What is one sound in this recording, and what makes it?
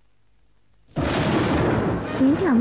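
Thunder crashes loudly and rumbles on.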